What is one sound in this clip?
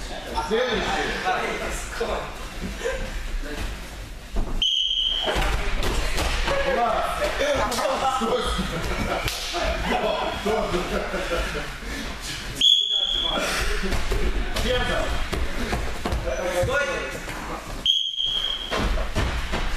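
Young people talk and call out in a large echoing hall.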